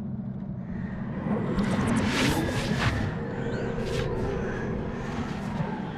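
A magical swirl whooshes and shimmers.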